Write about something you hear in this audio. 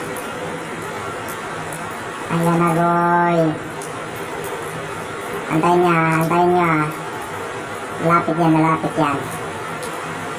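A cat chews and crunches food.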